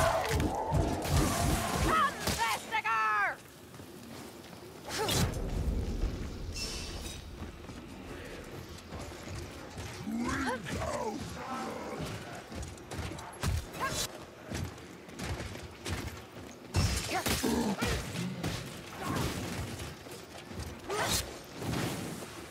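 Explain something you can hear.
Blades swing and slash with sharp swishes and impacts.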